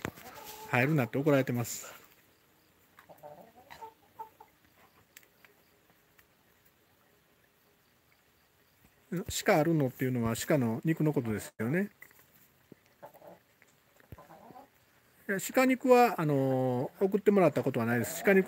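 A hen clucks and squawks loudly near by.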